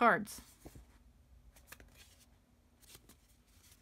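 Paper rustles softly as a card is opened and handled.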